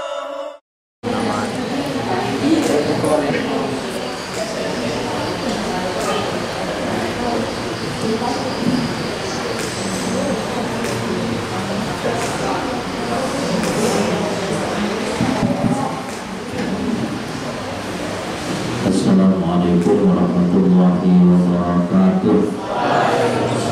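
A man speaks steadily into a microphone, heard through a loudspeaker.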